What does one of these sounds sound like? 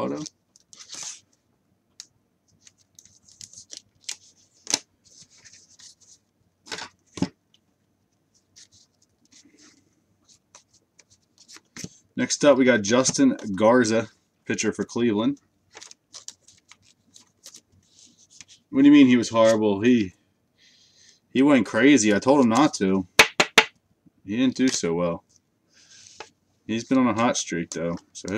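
Plastic card sleeves and packs crinkle and rustle in hands.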